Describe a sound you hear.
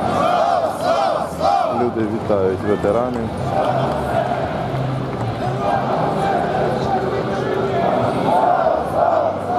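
A large crowd of men and women chants and sings loudly outdoors.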